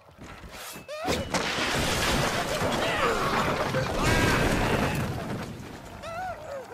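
A heavy wooden platform crashes down and splinters apart.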